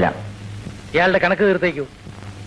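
A man answers close by.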